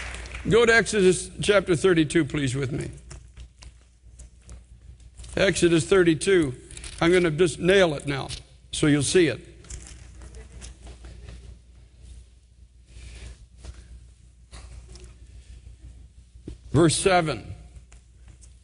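A man speaks slowly and earnestly into a microphone, with pauses, in a large hall.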